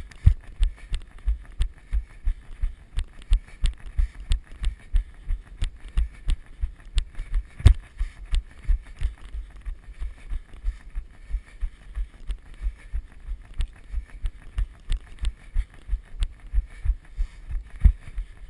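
Running footsteps thud steadily and quickly on a dirt trail, close by.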